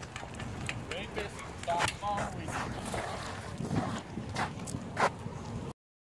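Bicycle tyres roll and rattle over pavement.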